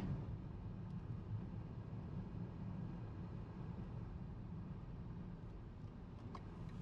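A car engine rumbles low and steady from inside the cabin.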